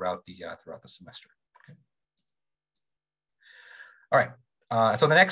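A young man lectures calmly through a computer microphone, pausing between phrases.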